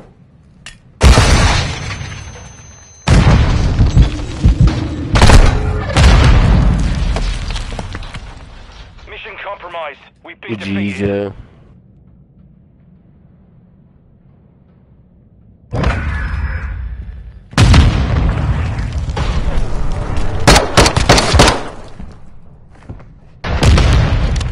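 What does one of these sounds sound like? Gunshots ring out in loud, sharp bursts.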